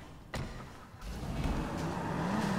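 A car engine runs as a car pulls away slowly.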